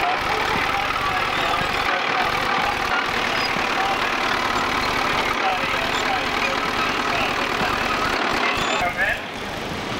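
A tractor engine chugs steadily nearby.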